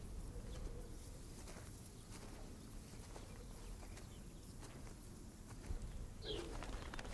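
Footsteps crunch softly through grass.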